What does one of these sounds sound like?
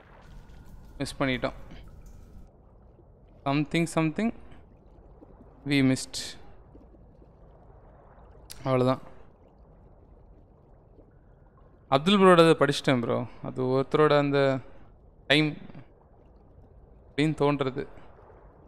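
A young man talks through a close microphone in short bursts.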